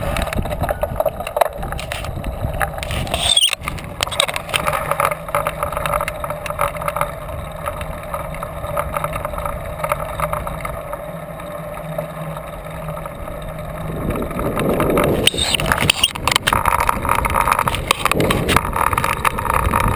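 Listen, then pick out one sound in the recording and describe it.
Wind buffets loudly past a cyclist riding along a road.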